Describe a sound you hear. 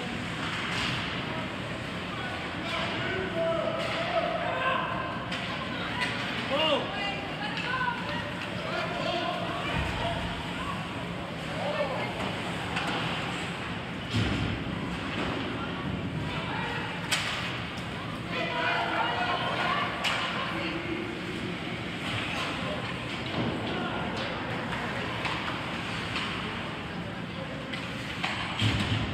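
Ice hockey skates scrape across ice.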